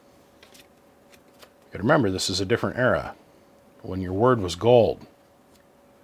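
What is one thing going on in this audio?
Paper rustles as a card is slid out of a booklet.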